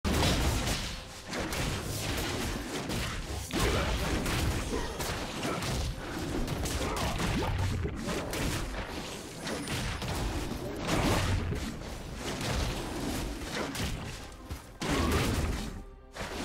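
Game characters clash with thuds and magic blasts in battle.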